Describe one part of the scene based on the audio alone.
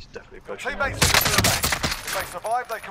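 A rifle fires a loud, sharp shot.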